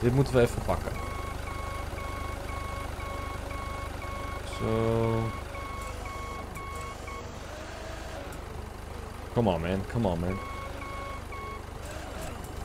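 A forklift's reversing alarm beeps in a steady rhythm.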